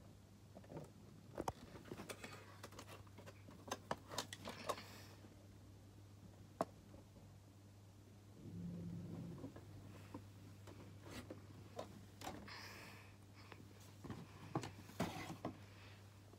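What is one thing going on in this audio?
Hands handle and knock a plastic toy, with clicks and bumps close by.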